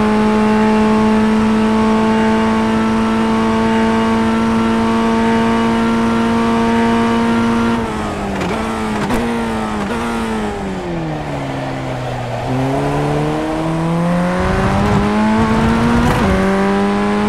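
A racing car engine whines at a steady high pitch, then drops as the car brakes and rises again as it speeds up.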